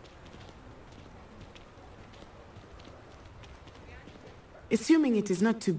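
Footsteps tap softly on cobblestones.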